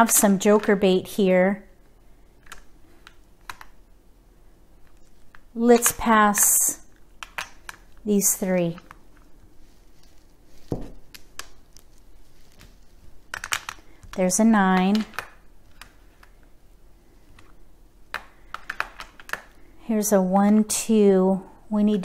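Plastic tiles click and clack as a hand moves them on a rack.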